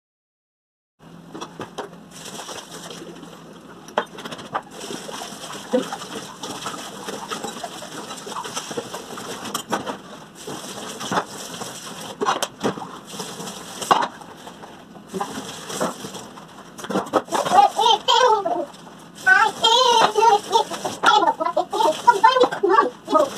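Dishes clink and clatter in a sink.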